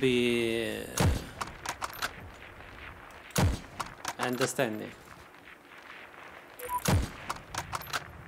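Sharp rifle shots crack and echo.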